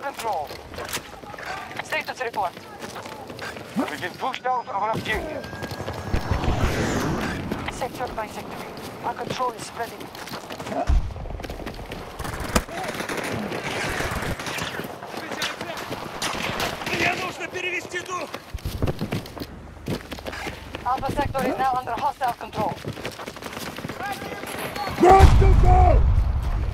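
Footsteps crunch quickly on gravel and rock.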